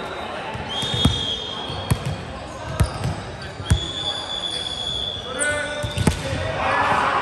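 A volleyball smacks against hands and the floor.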